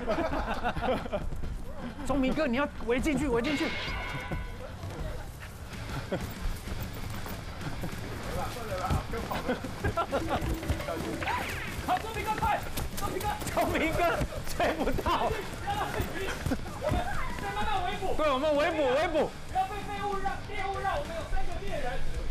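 A man talks with animation outdoors.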